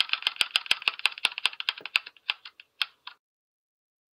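A prize wheel ticks rapidly, slowing down until it stops.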